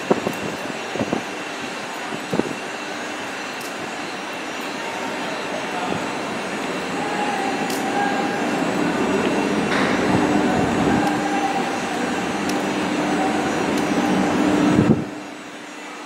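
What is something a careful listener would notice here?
A train rumbles and clatters along the tracks, growing louder.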